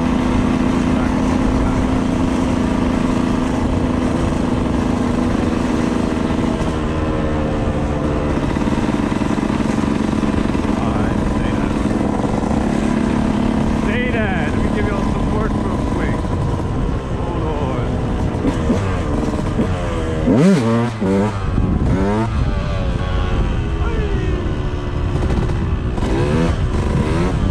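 A motorbike engine hums and revs steadily while riding along a street.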